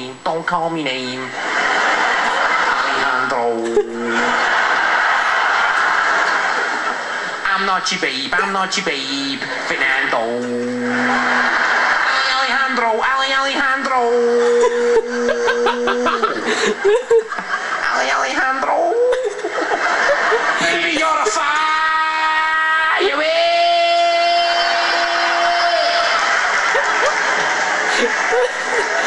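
A young man sings loudly through a microphone.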